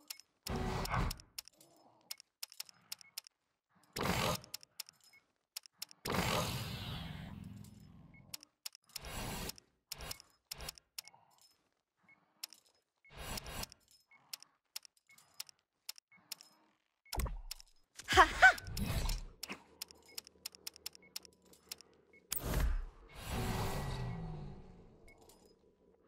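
Short menu clicks and whooshes sound as characters are picked in a video game.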